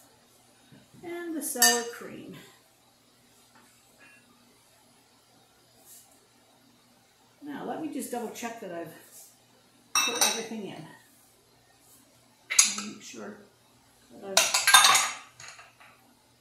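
An elderly woman talks calmly and close by, in short bursts.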